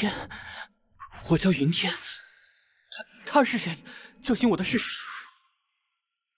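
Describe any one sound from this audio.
A young man speaks in a strained, pained voice.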